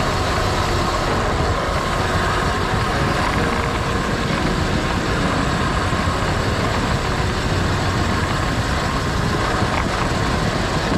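Wind rushes past a cyclist riding fast downhill.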